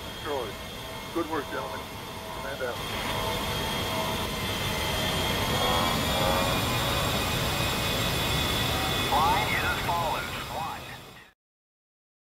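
A jet aircraft roars loudly as it flies close by.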